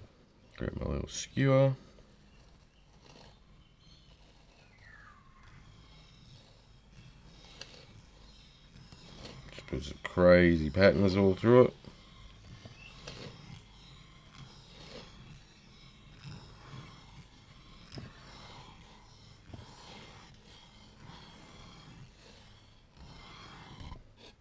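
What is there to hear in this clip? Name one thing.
A stick scrapes softly through wet paint.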